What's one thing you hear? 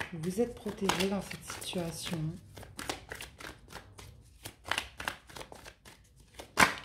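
Playing cards riffle and rustle as they are shuffled by hand.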